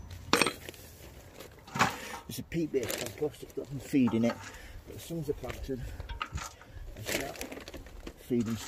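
Soil patters onto a metal watering can.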